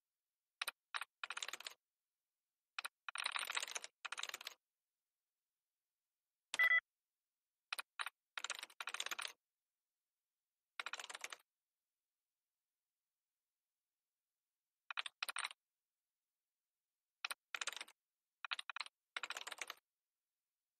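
Rapid bursts of clicky keyboard chatter come from a computer terminal.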